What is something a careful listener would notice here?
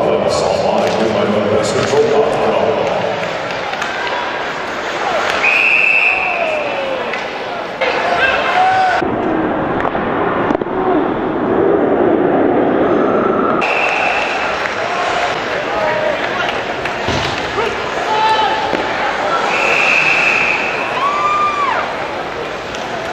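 Skates scrape across the ice.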